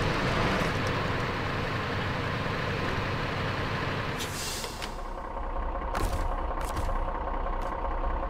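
A truck's tyres crunch over snow and rocks.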